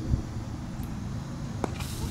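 A cricket bat strikes a ball with a sharp knock.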